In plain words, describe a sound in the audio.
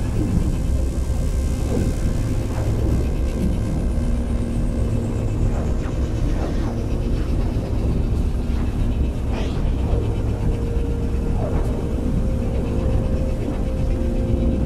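A spaceship's engines roar steadily.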